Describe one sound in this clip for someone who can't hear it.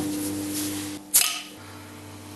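A bottle cap pops off a glass bottle.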